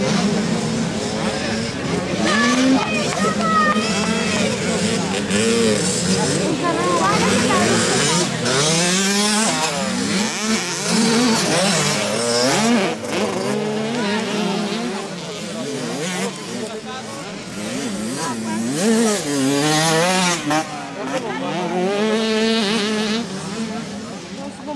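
Dirt bike engines rev and whine, rising and falling in pitch.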